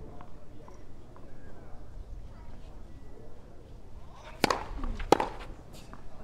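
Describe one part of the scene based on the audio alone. A tennis ball is struck sharply by rackets, bouncing back and forth.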